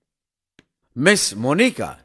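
A man speaks loudly and with emotion, close by.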